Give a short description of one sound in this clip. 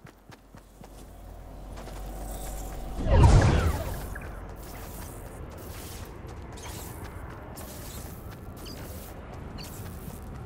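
An energy storm wall roars and hums with a low rumble.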